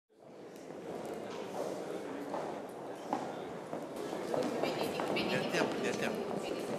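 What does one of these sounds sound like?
A crowd of adults murmurs and chats in an echoing room.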